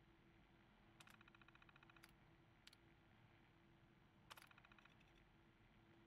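A computer terminal chatters with rapid electronic clicks as text prints.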